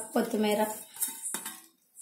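A knife scrapes chopped herbs into a bowl.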